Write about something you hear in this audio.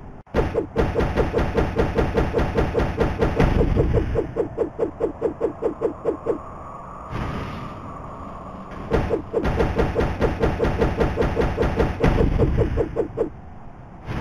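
Rapid blows strike stone again and again.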